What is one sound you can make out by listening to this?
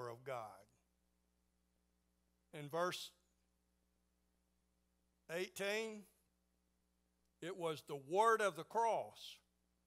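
An elderly man preaches slowly through a microphone, pausing between phrases.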